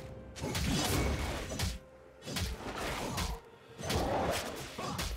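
Magic spells crackle and whoosh in bursts during a video game battle.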